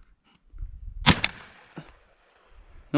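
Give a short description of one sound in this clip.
A shotgun fires a loud blast that echoes away outdoors.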